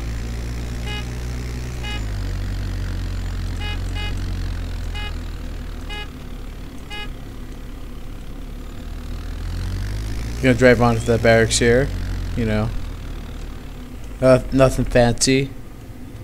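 A quad bike engine drones steadily as it drives.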